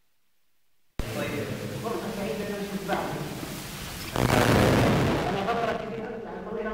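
A man speaks with animation in an echoing hall.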